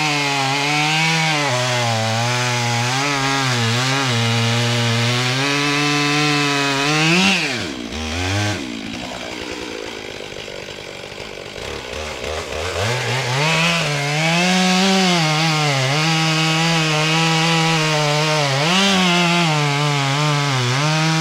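A chainsaw engine roars loudly while cutting through wood, then drops to a low idle and revs back up.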